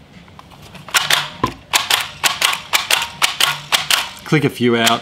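A price labeler clicks rapidly as its handle is squeezed.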